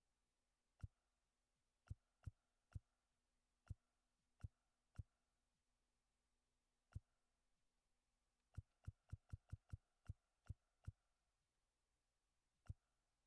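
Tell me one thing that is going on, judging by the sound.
Short sharp clicks tick one after another, sometimes in quick runs.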